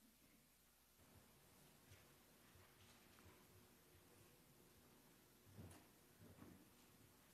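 Footsteps thud softly across a floor.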